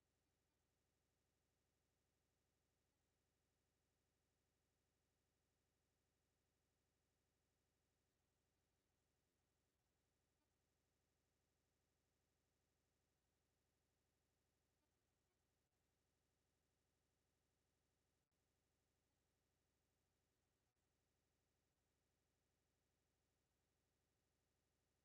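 A clock ticks steadily, close by.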